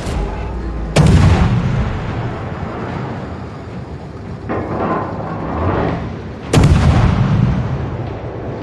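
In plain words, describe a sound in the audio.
Heavy naval guns fire with a booming blast that rumbles away.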